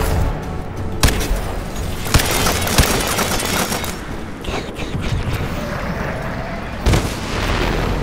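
A rifle fires several sharp, loud shots.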